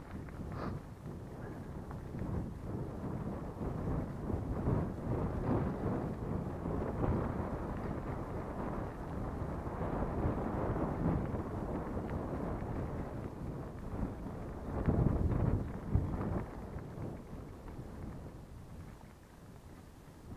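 Tyres crunch and rumble over a bumpy dirt track.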